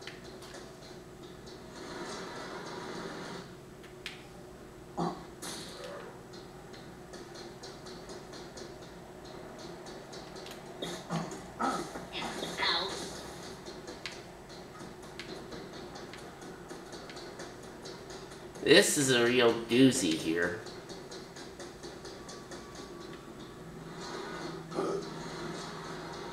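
Video game music plays steadily from a television speaker.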